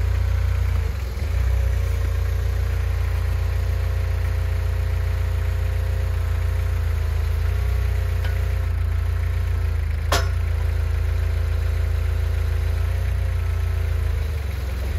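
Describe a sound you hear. A diesel engine idles loudly and steadily close by.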